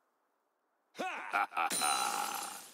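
A young man exclaims close to a microphone.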